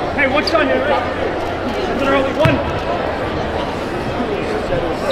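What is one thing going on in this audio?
A crowd chatters and calls out in a large echoing arena.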